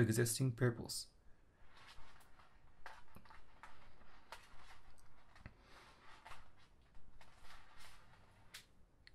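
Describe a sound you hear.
Stiff plastic strands rustle and crinkle between fingers.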